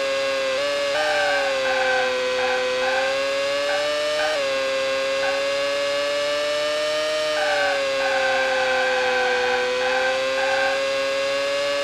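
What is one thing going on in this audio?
Tyres screech in bursts through the corners.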